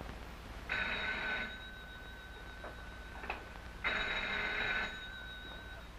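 A telephone rings twice.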